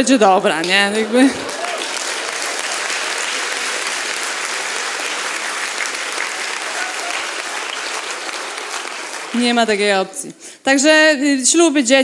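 A young woman speaks with animation through a microphone in a large hall.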